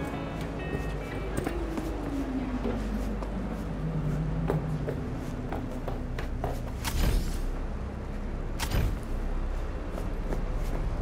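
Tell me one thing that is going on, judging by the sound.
Footsteps thud quickly on concrete while running and jumping down.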